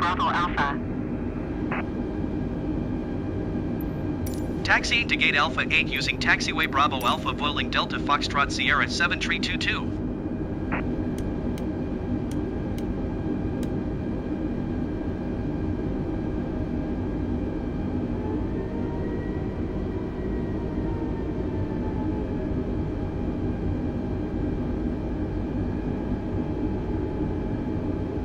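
Jet engines hum steadily at low power as an airliner taxis.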